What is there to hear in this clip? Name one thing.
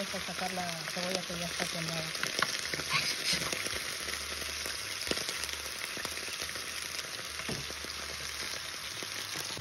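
A metal spoon scrapes and stirs pieces of raw chicken in a metal pot.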